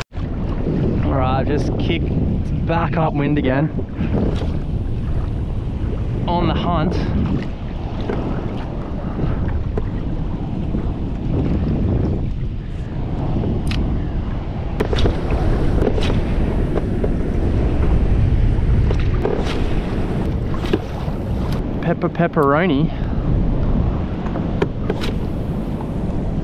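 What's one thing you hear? Small waves lap against a kayak's hull.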